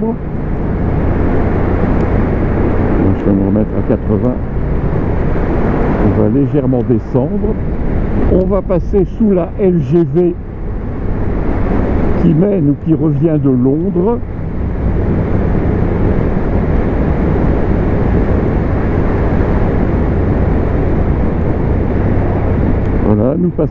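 A motorcycle engine hums steadily, rising and falling in pitch as the rider changes gear.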